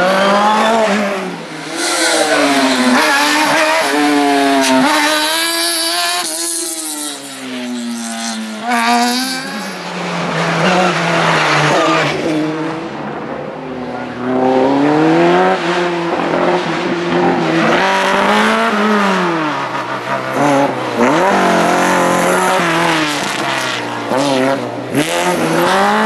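Racing car engines roar and rev hard, rising and falling in pitch as they shift gears.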